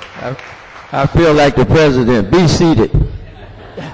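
A man speaks with animation into a microphone in a large room.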